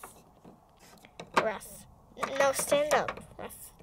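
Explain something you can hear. Small plastic toys knock and clatter lightly.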